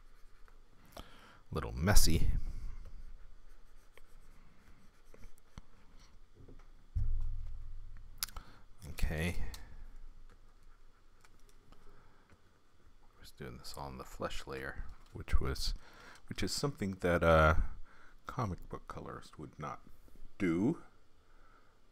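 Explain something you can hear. A middle-aged man speaks calmly and casually into a close microphone, with pauses.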